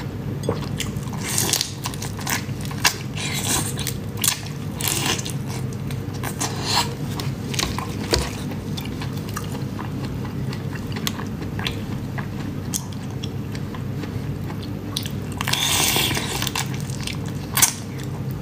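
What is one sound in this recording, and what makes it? A young woman bites and chews whole prawns close to a microphone.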